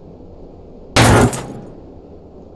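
A cash register drawer springs open with a loud ring.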